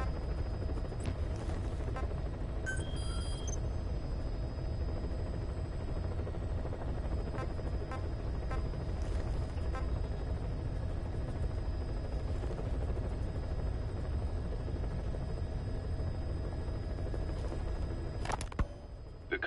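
Short electronic menu beeps sound now and then.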